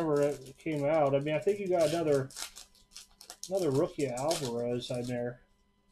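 A paper pack of cards is torn open.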